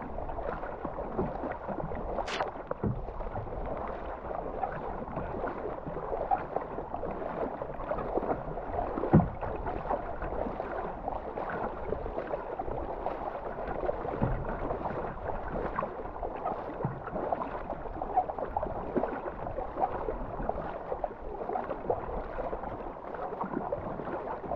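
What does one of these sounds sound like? A kayak paddle splashes rhythmically through the water.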